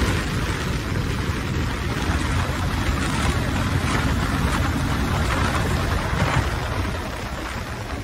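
Wind rushes loudly past the rider, then eases.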